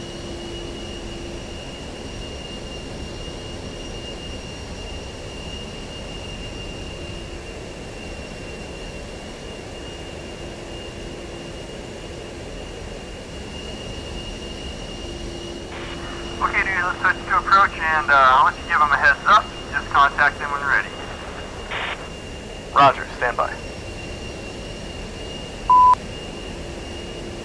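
A jet engine hums steadily inside a cockpit.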